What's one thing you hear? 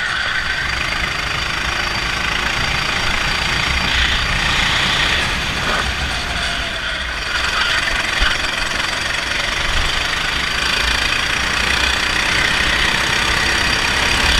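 Wind rushes past a moving go-kart.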